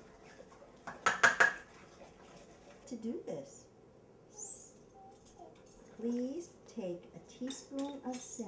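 A spoon clinks against a jar.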